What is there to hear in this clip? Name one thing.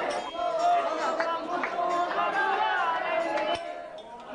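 A man sings loudly with animation.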